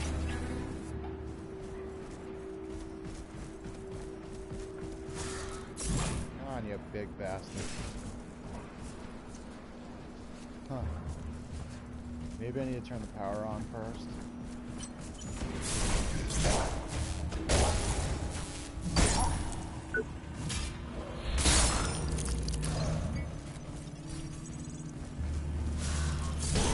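Armoured footsteps clank on hard ground.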